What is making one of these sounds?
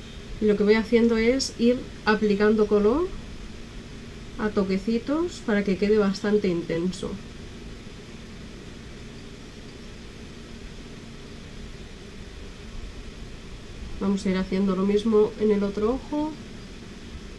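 A woman speaks calmly and close by.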